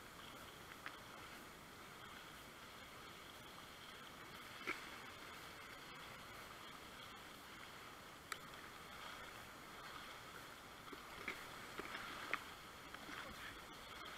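Water knocks and slaps against a kayak's hull.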